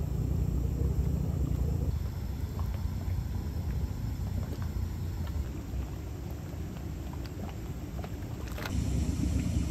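Hot mud bubbles and gurgles.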